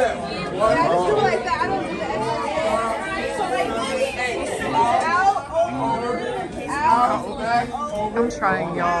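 A crowd of young men and women talk and call out loudly all at once, close by.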